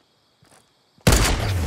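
A rifle fires a loud single shot.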